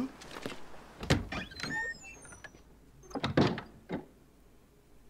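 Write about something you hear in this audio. A wooden door creaks open and thuds shut.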